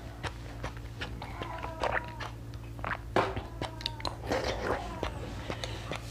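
A young woman slurps and sucks on soft jelly beads close up.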